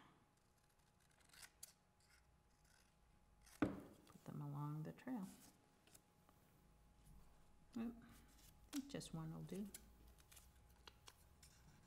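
Paper rustles and crinkles under handling.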